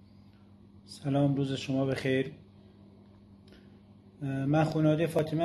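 A man speaks calmly and close up, with short pauses.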